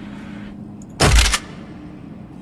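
A game menu gives a short, sharp whoosh as it switches pages.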